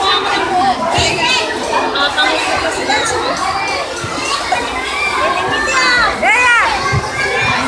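Children shriek in high voices.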